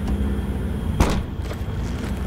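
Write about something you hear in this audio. A car trunk lid slams shut.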